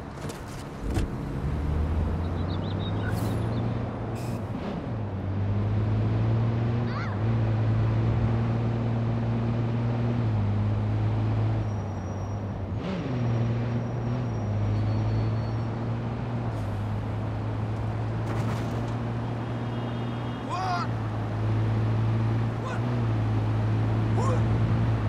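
A car engine starts and revs, changing pitch as gears shift.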